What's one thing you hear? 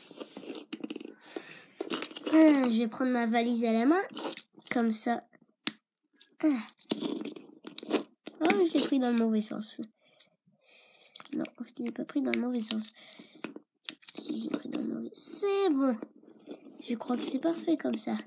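Small plastic toy figures click and tap on a wooden floor as hands move them.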